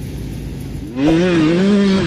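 A dirt bike engine roars and revs.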